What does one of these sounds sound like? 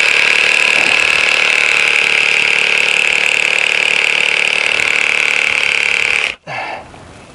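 A chainsaw runs loudly, cutting into a tree trunk, then cuts off.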